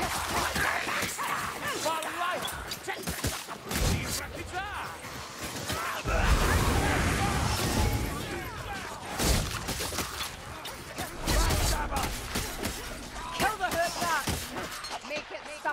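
Blades slash and hack into flesh again and again.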